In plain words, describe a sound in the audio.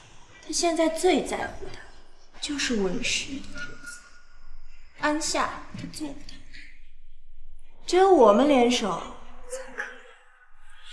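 A young woman speaks close by in a firm, persuasive voice.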